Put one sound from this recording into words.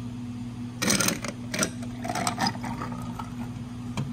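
Juice pours over ice.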